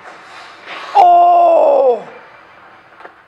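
A woman exclaims loudly in surprise close by.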